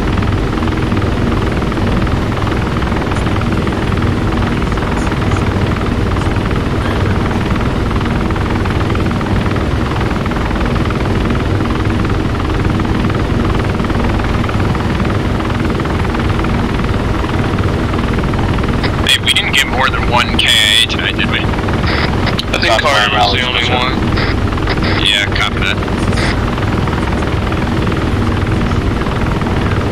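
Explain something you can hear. An aircraft engine drones steadily and loudly from inside the cabin.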